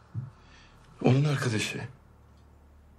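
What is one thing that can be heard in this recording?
A second man answers quietly, close by.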